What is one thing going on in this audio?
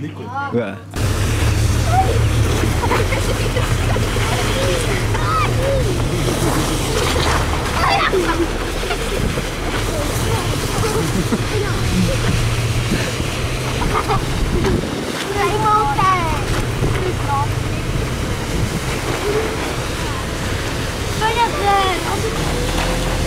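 A sled scrapes along a dirt track.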